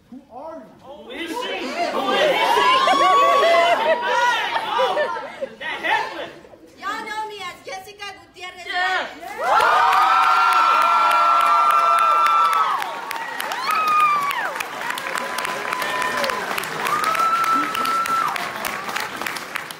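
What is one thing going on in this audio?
Young women scream and cheer with excitement in an echoing hall.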